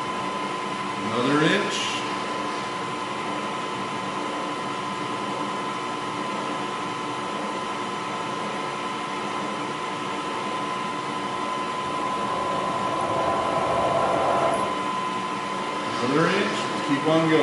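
A machine spindle winds up in pitch.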